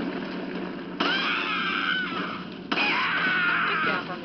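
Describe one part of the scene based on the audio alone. A monster shrieks loudly through a television speaker.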